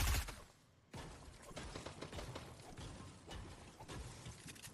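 Bullets crack and whiz past in a burst of gunfire.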